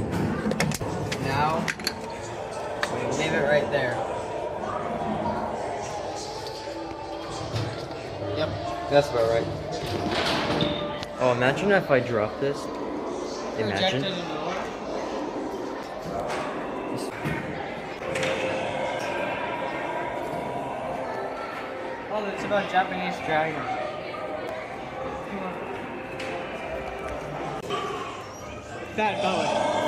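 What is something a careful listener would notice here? Many voices of adults and children chatter around in a large echoing hall.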